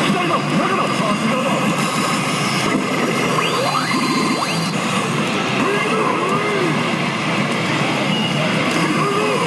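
A gaming machine plays loud, busy electronic music.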